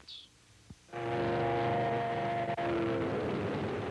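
A train horn blows loudly.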